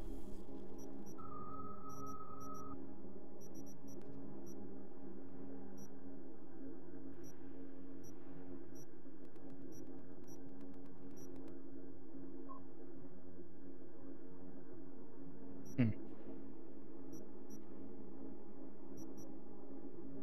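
Short soft electronic blips sound as menu items are selected.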